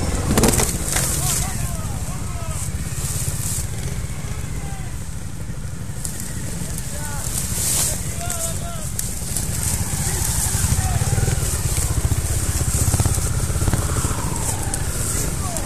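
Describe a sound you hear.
Men talk among themselves outdoors.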